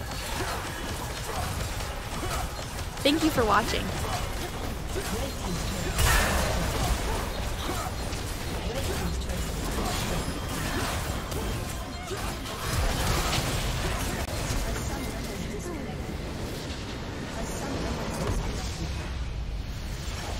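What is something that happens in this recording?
Video game spells and weapon hits clash rapidly in a battle.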